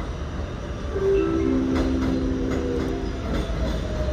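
A subway train sounds its horn.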